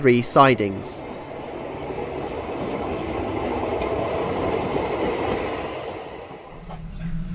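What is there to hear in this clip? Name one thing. A tram pulls away from a platform.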